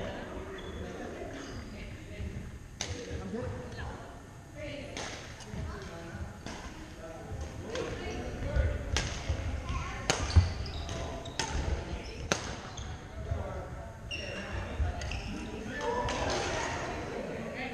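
Voices of men and boys chatter faintly across a large echoing hall.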